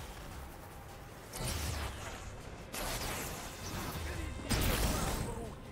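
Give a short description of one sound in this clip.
Energy blasts crackle and explode in loud bursts.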